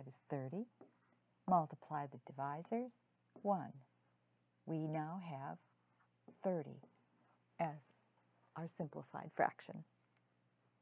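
A middle-aged woman speaks calmly and clearly close to a microphone.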